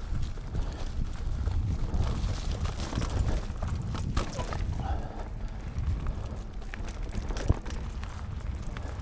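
Bicycle tyres roll and rumble over a bumpy dirt trail.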